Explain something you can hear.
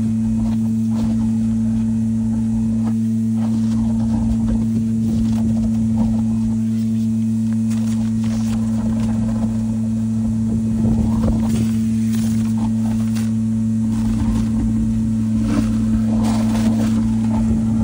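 A vacuum hose slurps and gurgles as it sucks thick sludge from a septic tank.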